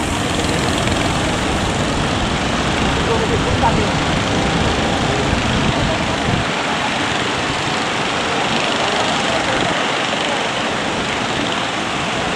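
Waves roll and break steadily against the shore.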